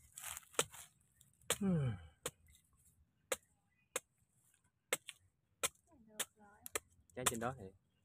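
A knife blade chops into a coconut husk with sharp knocks.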